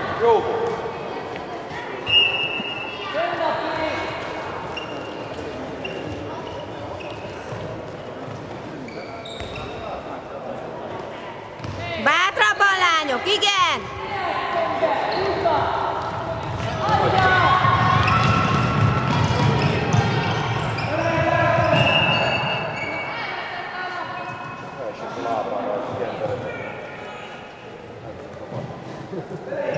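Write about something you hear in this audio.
Players' shoes squeak on a hard court in a large echoing hall.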